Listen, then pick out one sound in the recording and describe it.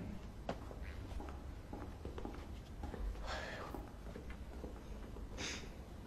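Footsteps tap on a hard floor nearby.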